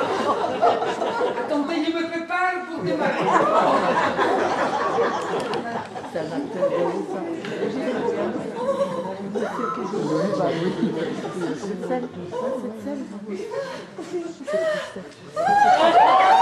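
A woman speaks with animation on a stage, heard from a distance in a large hall.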